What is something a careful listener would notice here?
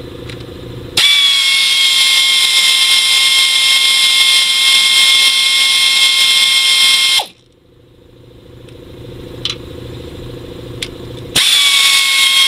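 A cordless power drill whirs steadily at high speed.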